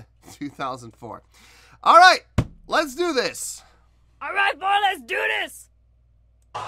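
A middle-aged man talks with animation close by.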